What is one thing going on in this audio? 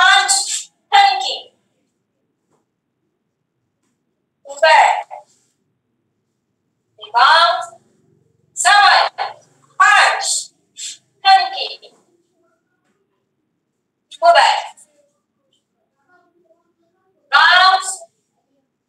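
A young woman calls out short, sharp counts through an online call, with pauses between.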